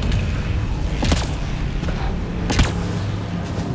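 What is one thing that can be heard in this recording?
An energy blast bursts with a sharp crack.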